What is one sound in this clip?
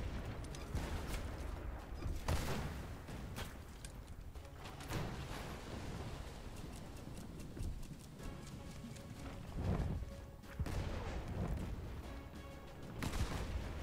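Waves wash against a wooden ship.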